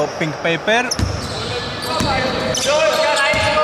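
A basketball bounces on a wooden floor with a booming thud.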